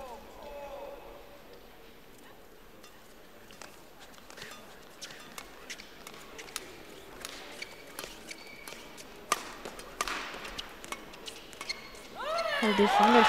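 Rackets strike a shuttlecock back and forth in a rally.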